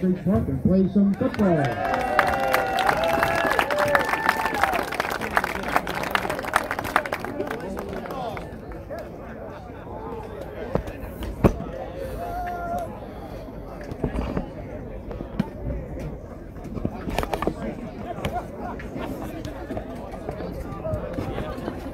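A crowd chatters in the distance.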